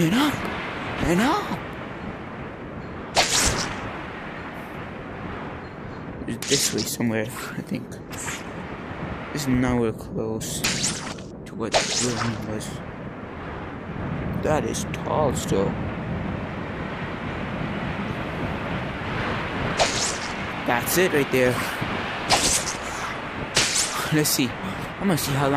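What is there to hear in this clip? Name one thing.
Swinging web lines whoosh again and again.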